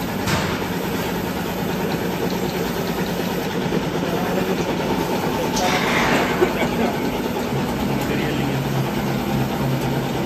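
A machine hums and rattles steadily.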